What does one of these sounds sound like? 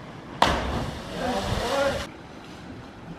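A diver plunges into water with a loud splash.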